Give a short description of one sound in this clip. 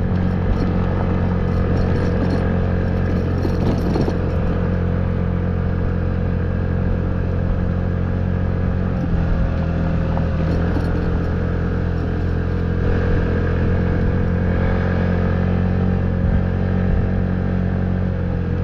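A small motorbike engine hums steadily close by.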